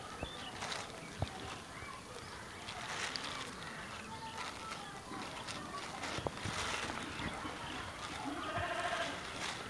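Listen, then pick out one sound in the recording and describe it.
A plastic bag rustles and crinkles against paper.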